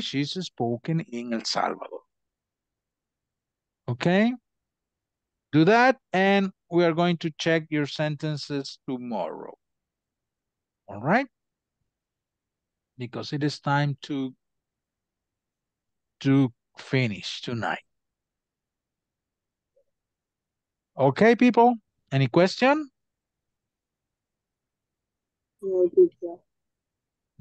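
A man speaks calmly through an online call, explaining in bursts with pauses.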